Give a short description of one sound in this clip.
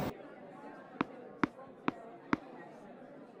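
A tennis ball bounces on the court several times.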